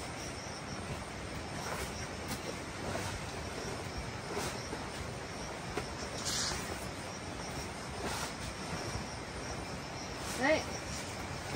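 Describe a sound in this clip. Blankets and fabric rustle softly as they are handled and folded.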